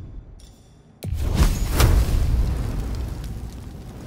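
A fiery spell bursts with a loud, deep whoosh and crackle.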